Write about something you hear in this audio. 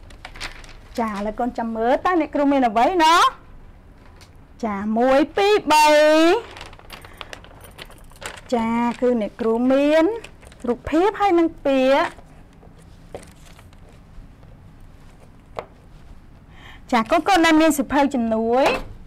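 A young woman speaks clearly and with animation, as if teaching.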